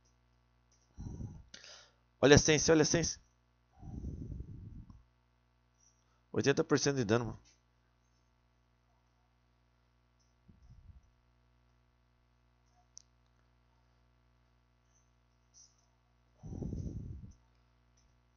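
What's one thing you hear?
A young man talks in short bursts into a nearby microphone.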